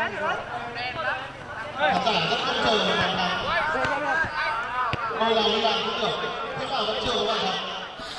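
A football thuds as players kick it outdoors.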